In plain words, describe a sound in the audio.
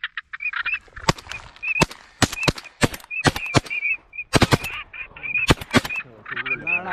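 Shotguns fire several loud blasts in quick succession.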